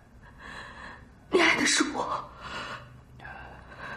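A young woman speaks close by in a distressed voice.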